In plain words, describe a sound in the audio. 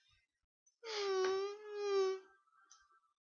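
A video game creature lets out a short, wavering electronic cry.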